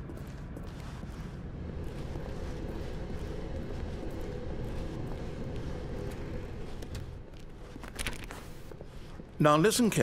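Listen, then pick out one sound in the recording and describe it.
Footsteps thud steadily on hard floors and stairs.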